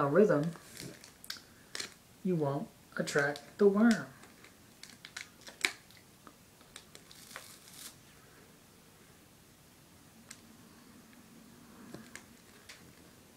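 A wrapper crinkles in a man's hand.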